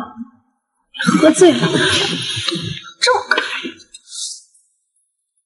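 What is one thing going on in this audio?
A young woman speaks softly up close.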